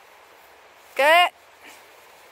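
A man calls out briefly.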